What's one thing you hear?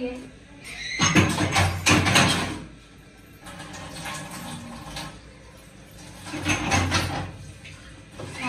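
Water splashes from a tap.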